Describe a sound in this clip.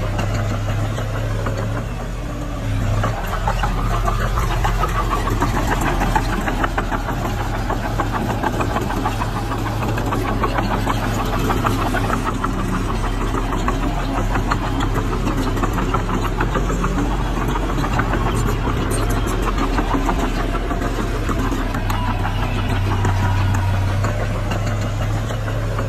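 Bulldozer tracks clank and squeak as dirt is pushed.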